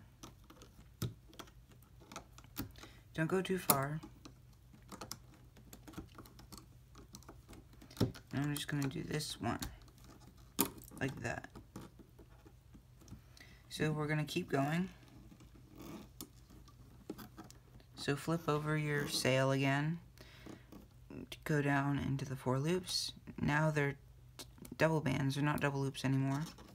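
Rubber bands click and snap softly as a plastic hook pulls them.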